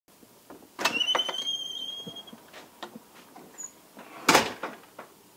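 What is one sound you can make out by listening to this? A wooden door bumps shut.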